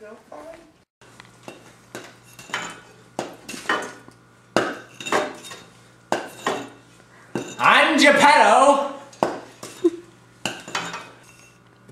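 A hammer knocks on a wooden board.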